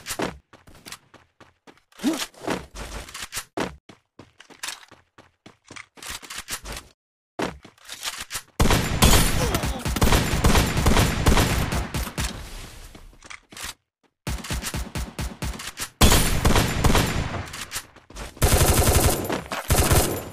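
Rapid gunshots rattle out in bursts.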